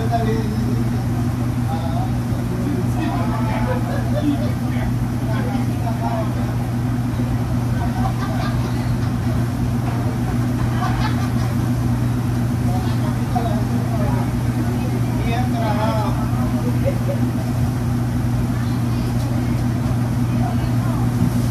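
A ventilation fan hums steadily and loudly.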